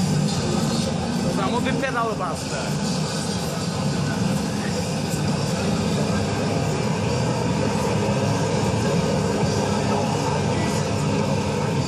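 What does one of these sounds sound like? A busy arcade hums with loud mixed game noise.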